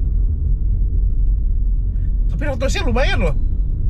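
A car's engine and road noise hum low inside the cabin.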